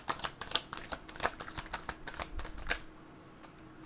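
Playing cards are shuffled with quick soft flicks.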